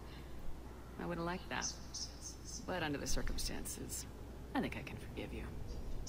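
A young woman speaks calmly and softly.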